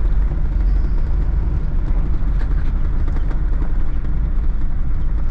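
A car engine rumbles low and steady as the car drives slowly.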